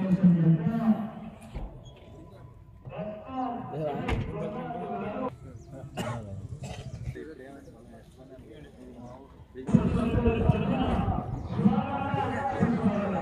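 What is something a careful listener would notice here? Several men talk outdoors nearby.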